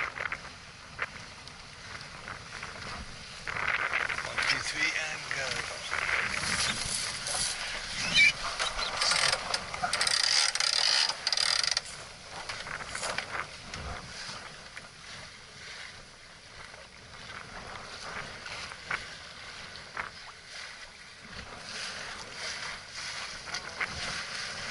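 Water splashes and rushes against a moving boat's hull.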